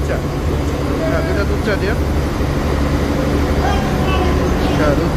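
A ship's engine rumbles steadily in a low drone.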